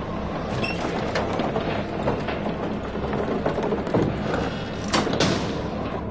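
A metal lever clunks as a switch is thrown.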